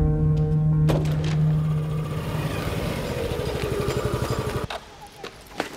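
A scooter engine putters as the scooter rolls up and stops.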